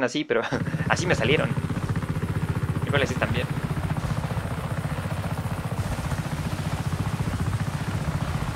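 Helicopter rotor blades thump rapidly and steadily close by.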